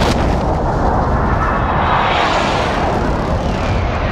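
Wind rushes loudly past during a fall through the air.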